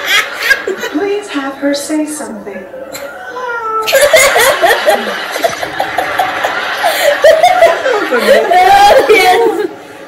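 A woman laughs loudly nearby.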